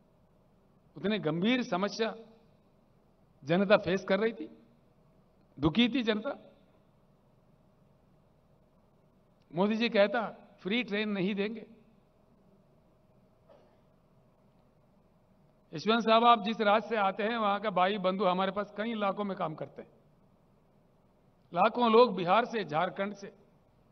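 An elderly man speaks forcefully into a microphone over loudspeakers, in short bursts with pauses.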